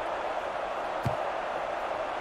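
A football is kicked with a single thud.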